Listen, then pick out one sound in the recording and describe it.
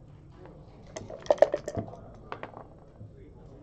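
Dice rattle in a cup and clatter onto a board.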